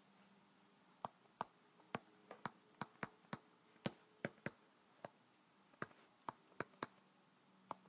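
A stylus taps and scratches lightly as it writes.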